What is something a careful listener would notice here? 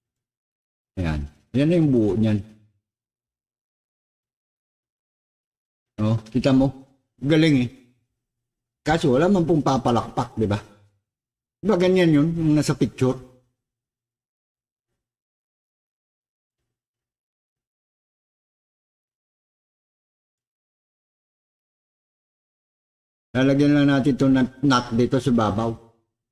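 A middle-aged man speaks calmly in short bursts, close to a microphone.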